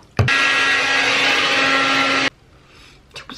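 A hair dryer blows loudly.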